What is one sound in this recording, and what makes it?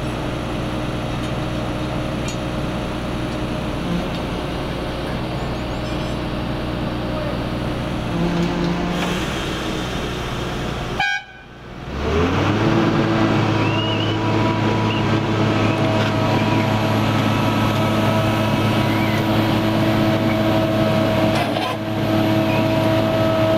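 A large diesel machine engine drones steadily nearby.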